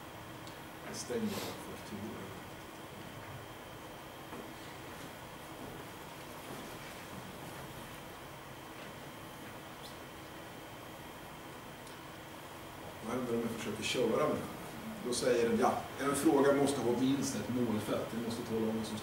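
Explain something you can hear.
A man speaks calmly nearby, lecturing.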